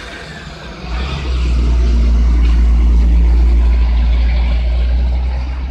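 A truck engine roars loudly close by.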